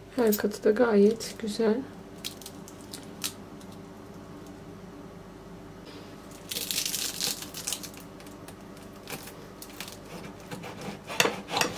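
A fork and knife scrape and clink against a plate.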